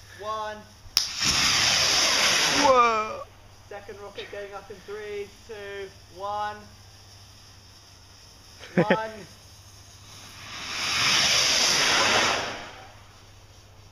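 A firework rocket launches with a loud rushing whoosh.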